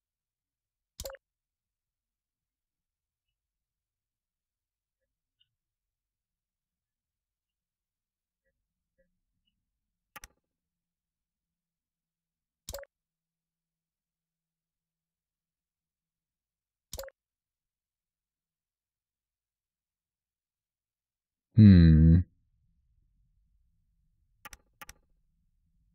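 Short soft clicks sound now and then as pieces snap into place.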